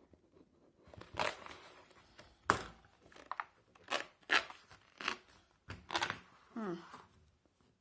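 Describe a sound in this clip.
Pages of a magazine are turned and rustle close by.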